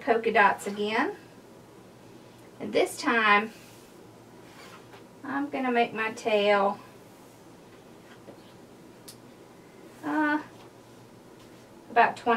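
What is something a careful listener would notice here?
A woman talks calmly close by, in short bursts.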